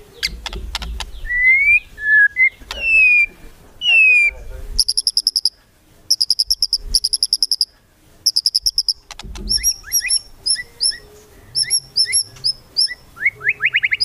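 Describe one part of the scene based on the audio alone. A songbird sings loudly and close by, mixing rich whistles, sharp clicks and rapid high trills.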